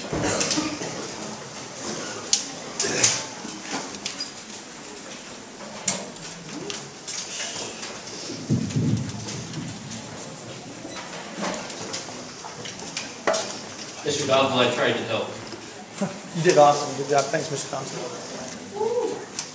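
Children murmur and chatter in a crowd.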